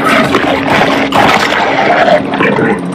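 A shark bites into prey with a wet crunch.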